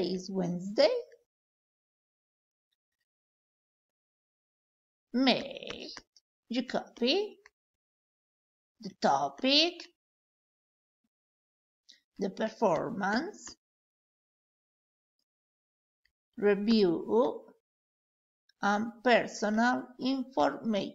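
A woman speaks calmly through a microphone in short phrases, with pauses between them.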